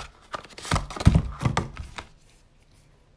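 Paper rustles as a booklet is handled.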